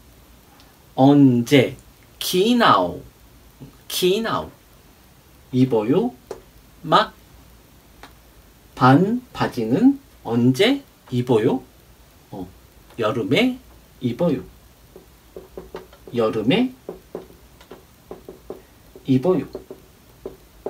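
A man speaks calmly and clearly, as if teaching, close by.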